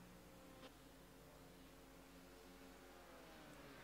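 Race car engines drone past on a track.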